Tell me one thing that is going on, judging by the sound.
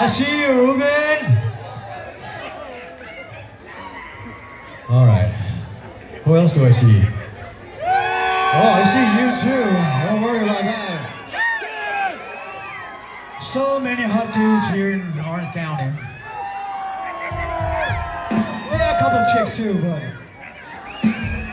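A man sings loudly through a microphone in an echoing hall.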